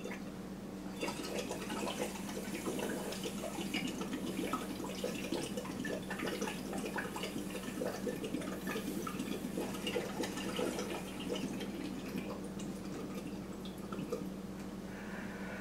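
A man blows air through a straw into a bottle of liquid, making it bubble.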